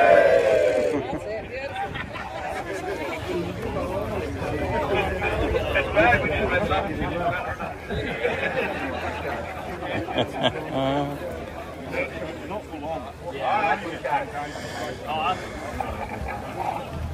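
Many men and women chatter and talk nearby, outdoors.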